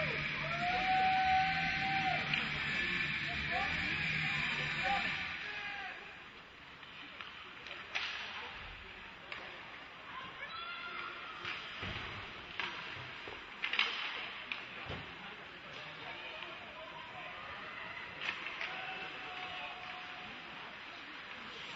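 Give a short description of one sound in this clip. Ice skates scrape across a rink.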